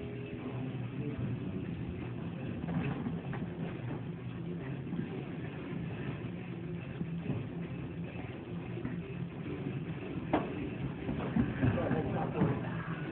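Bodies thump and scuff on a padded mat as people grapple.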